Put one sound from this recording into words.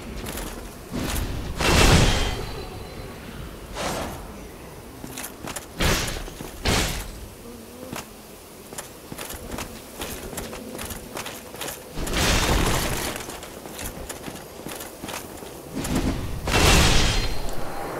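Swords clash and slash.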